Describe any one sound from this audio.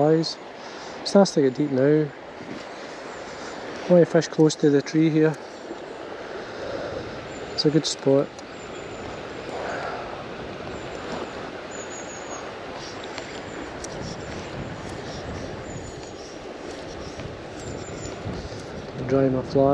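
River water ripples and laps steadily nearby.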